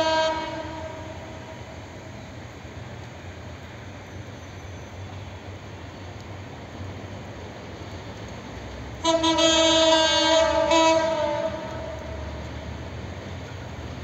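A train rumbles low as it approaches in the distance.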